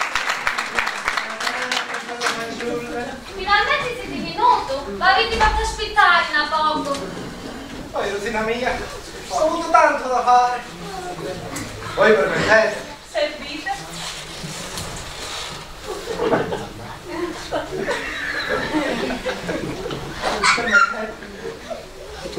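A woman speaks, heard from an audience.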